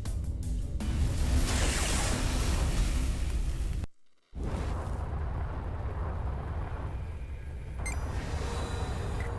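A spaceship engine roars and whooshes loudly.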